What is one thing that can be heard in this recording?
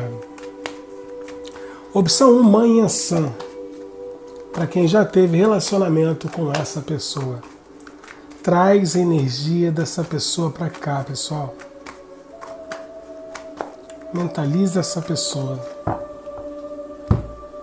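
Playing cards shuffle and rustle in hands.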